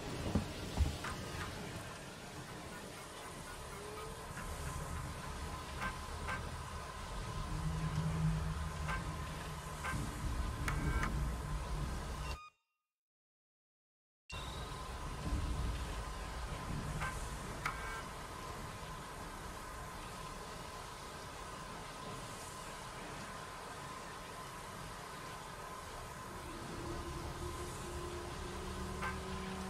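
A computer terminal gives short electronic beeps and blips.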